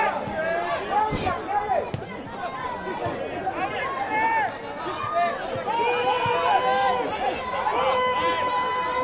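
A large crowd sings and chants loudly in a stadium.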